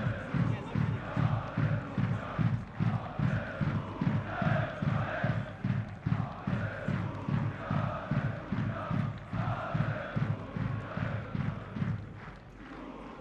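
A crowd of fans chants and drums rhythmically in a stadium.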